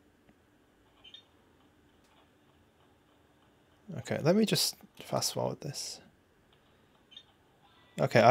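Buttons on a handheld game console click softly under thumbs.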